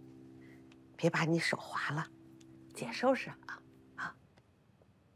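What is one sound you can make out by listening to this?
An elderly woman speaks gently up close.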